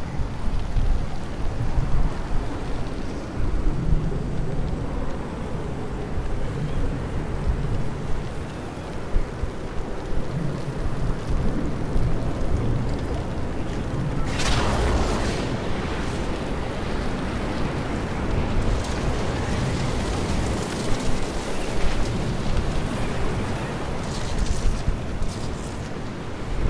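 A tornado roars with a deep rumbling wind.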